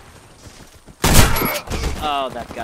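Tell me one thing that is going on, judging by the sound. A gun fires a loud burst.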